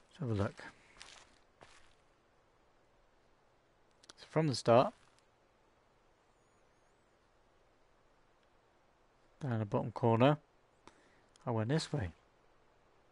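A young man speaks into a microphone in short bursts, with pauses between.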